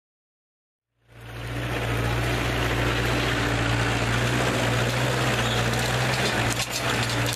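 A tractor engine idles loudly with a steady low rumble close by.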